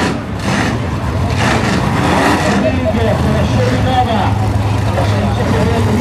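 Tyres screech and spin during a burnout.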